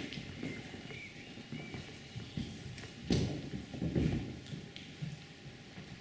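Footsteps knock on a wooden floor in a large echoing hall.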